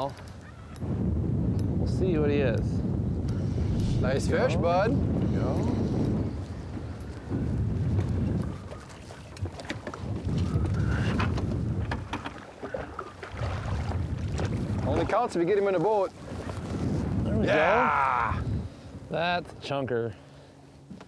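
Wind blows outdoors, rumbling.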